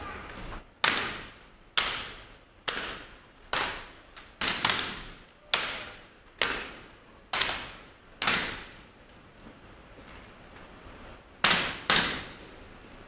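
Rifles slap and thud sharply in a drill, echoing through a large hall.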